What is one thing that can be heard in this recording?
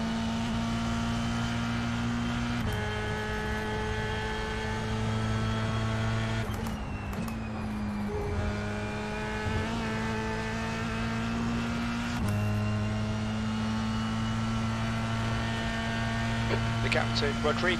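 A racing car engine whines steadily, shifting gears now and then.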